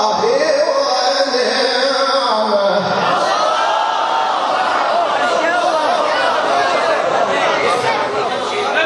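A man chants in a long, melodic voice through a microphone and loudspeakers.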